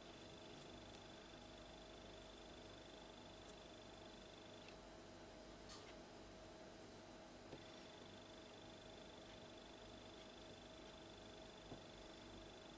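A pen scratches softly on card.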